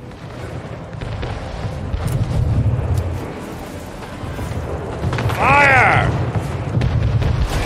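Cannons boom in rapid volleys.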